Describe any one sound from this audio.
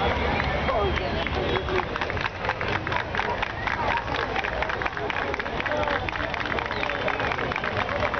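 A crowd murmurs and chatters nearby, outdoors.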